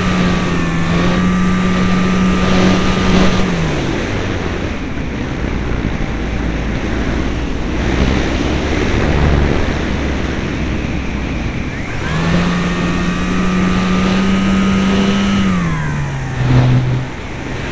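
A small propeller motor whines close by, then drops in pitch and cuts out.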